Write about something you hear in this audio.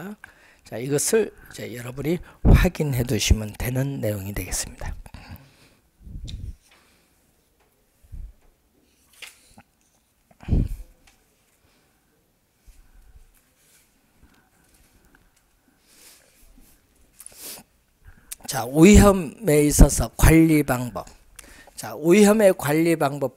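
An elderly man lectures through a microphone, speaking with animation and pausing between phrases.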